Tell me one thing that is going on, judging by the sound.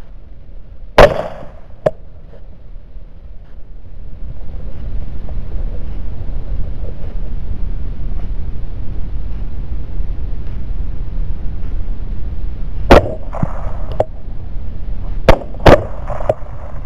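A rifle fires several loud, sharp shots.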